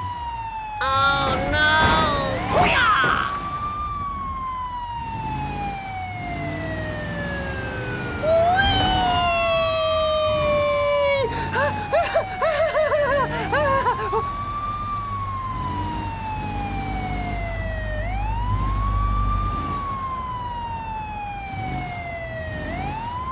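A police siren wails with slow rising and falling sweeps.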